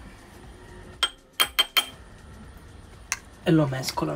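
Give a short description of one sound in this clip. A metal spoon clinks against glass.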